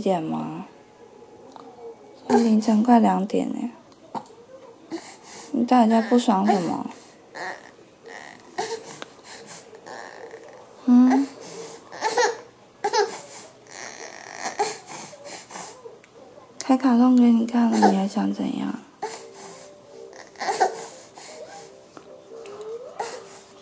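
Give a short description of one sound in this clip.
A toddler cries and whimpers close by in bursts.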